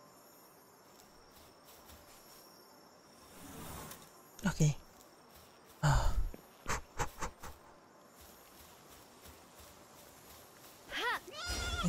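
Light footsteps pad across grass.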